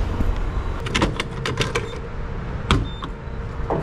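A fuel nozzle clatters as it is lifted from a pump.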